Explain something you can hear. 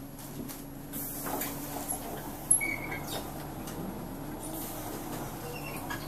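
Bus doors hiss open and shut with a burst of air.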